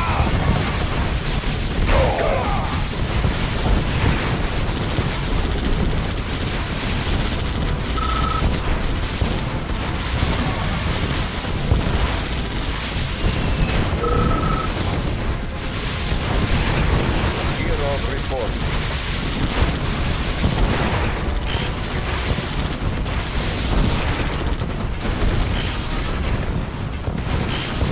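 Game weapons fire and explosions rumble continuously in a battle.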